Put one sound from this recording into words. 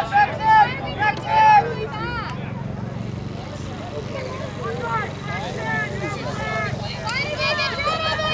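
Young women shout and call out across an open field outdoors.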